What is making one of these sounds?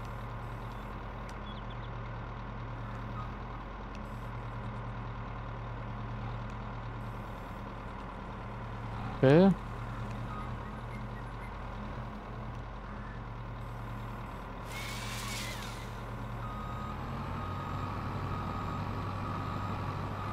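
A forestry machine's engine hums steadily throughout.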